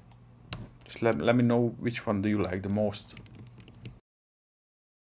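A man speaks calmly close to a microphone.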